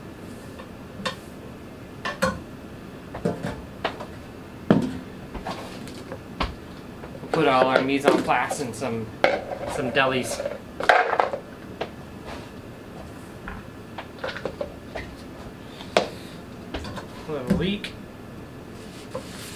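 A knife taps and thuds on a wooden cutting board.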